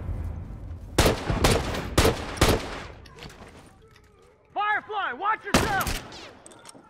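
Rifle shots crack loudly, one at a time.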